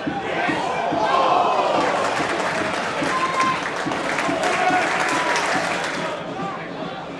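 A crowd roars loudly as an attack nears the goal.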